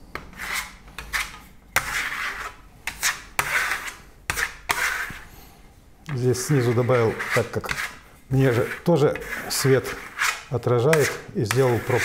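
A trowel scrapes across a wall in short strokes.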